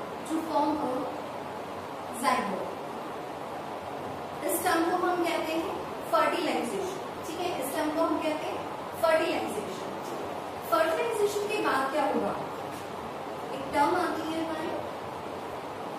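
A young woman speaks calmly, explaining, close to a microphone.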